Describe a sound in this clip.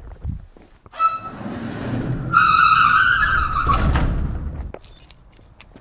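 A metal garage door screeches and rumbles as it swings shut.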